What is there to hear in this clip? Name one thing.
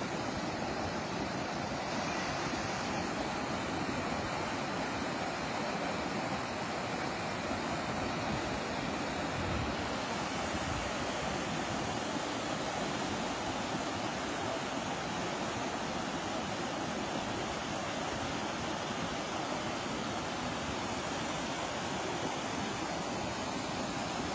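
A muddy torrent rushes and roars steadily down a slope nearby.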